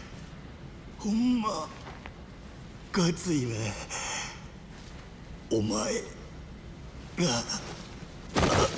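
A man speaks slowly and weakly in short, strained phrases.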